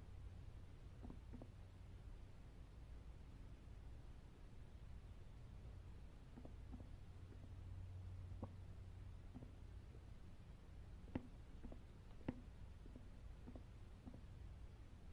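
Footsteps tap slowly across a wooden floor.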